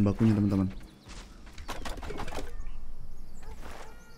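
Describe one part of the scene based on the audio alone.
An axe chops into a thick plant stalk with dull thuds.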